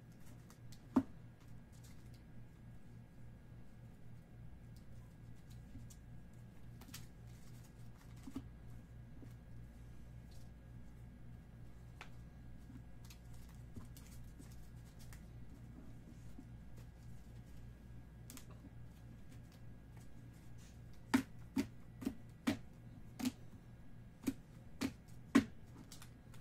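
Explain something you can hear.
Cards tap and click against a table.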